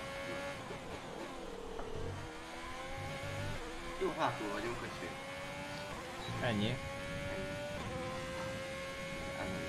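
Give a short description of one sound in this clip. A racing car engine whines steadily, rising in pitch and dropping as gears change.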